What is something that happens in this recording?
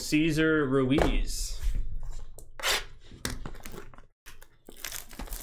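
Plastic wrapping crinkles and tears.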